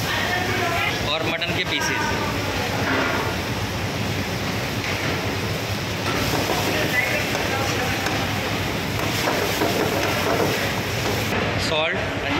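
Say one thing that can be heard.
Flames roar up from a pan.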